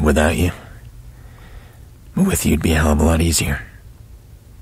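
A man speaks in a low, gravelly voice, close by.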